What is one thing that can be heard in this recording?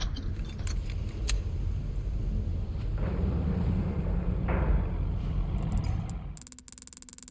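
A metal lift cage rumbles and rattles as it moves.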